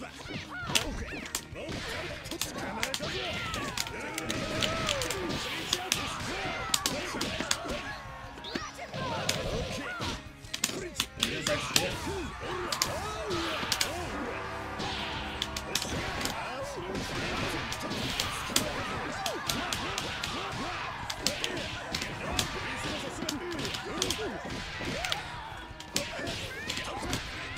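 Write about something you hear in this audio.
Rapid punches and kicks land with sharp smacks in a fighting game.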